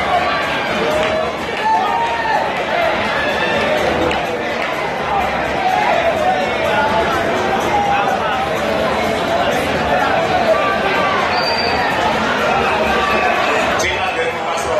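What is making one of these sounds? Young women sing together through loudspeakers.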